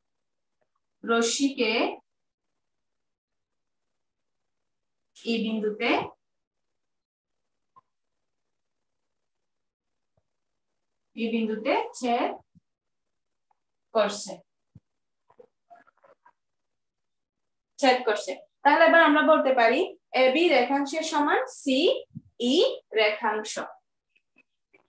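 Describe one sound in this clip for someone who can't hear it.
A woman speaks calmly in short phrases, close to a microphone.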